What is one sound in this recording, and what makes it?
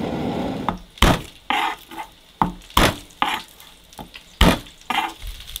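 A knife chops garlic on a wooden board.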